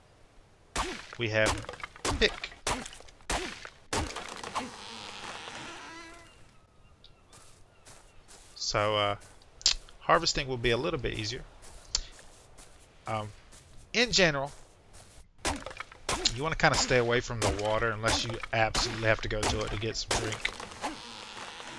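A hatchet chops into wood with dull thuds.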